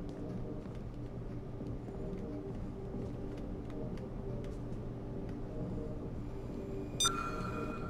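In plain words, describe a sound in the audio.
Footsteps climb hard stairs at a steady pace.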